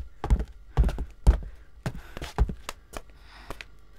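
Footsteps thud down wooden stairs.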